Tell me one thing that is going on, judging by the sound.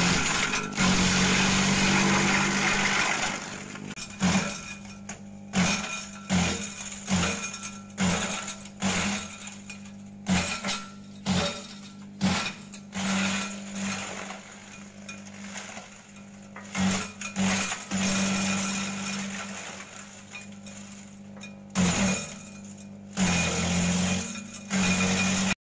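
An electric motor hums steadily.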